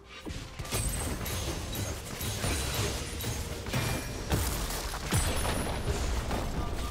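Video game combat effects crackle and thud with repeated magic blasts and hits.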